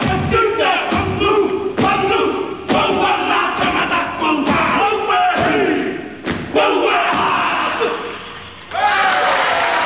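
Feet stomp hard on a wooden stage.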